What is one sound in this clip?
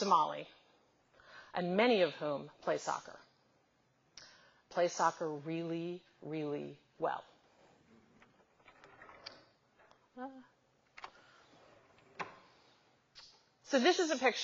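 A middle-aged woman speaks calmly through a microphone in a large room.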